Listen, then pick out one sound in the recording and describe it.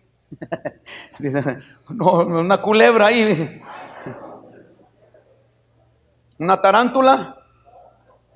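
A middle-aged man speaks with animation into a microphone, heard through a loudspeaker.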